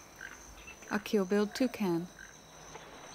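A toucan calls with loud, croaking yelps.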